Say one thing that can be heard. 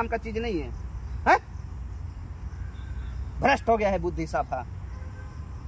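A young woman speaks nearby in short bursts.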